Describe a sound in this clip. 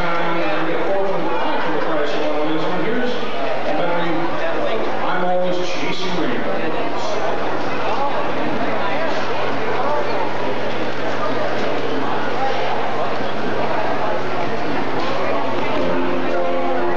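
A big band plays a lively tune in a large echoing hall.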